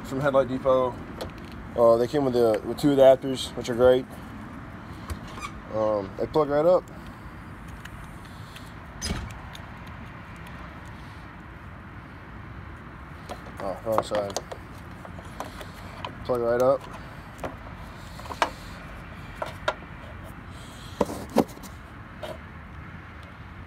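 Hard plastic parts click and knock close by.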